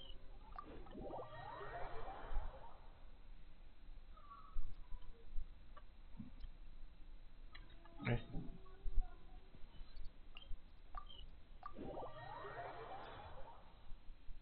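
A shimmering magical whoosh sweeps upward in pitch.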